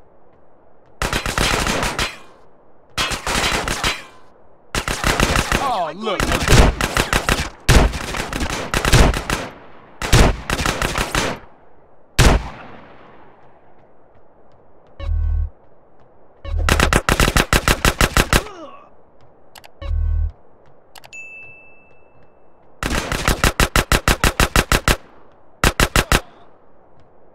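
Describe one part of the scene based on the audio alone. Guns fire in rapid bursts, one after another.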